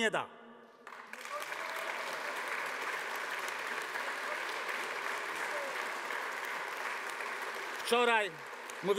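A crowd applauds in a large space.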